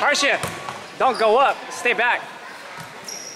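Spectators shout and cheer loudly in an echoing gym.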